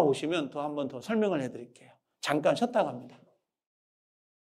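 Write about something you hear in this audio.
A middle-aged man lectures with animation through a microphone.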